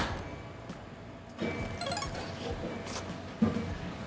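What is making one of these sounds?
A young man bites and chews food.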